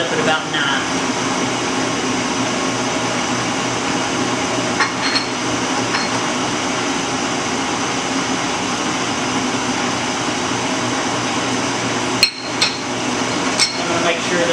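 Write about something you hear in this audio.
A large machine hums and rumbles steadily.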